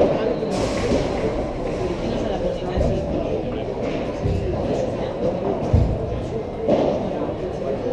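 A padel ball is struck with paddles back and forth.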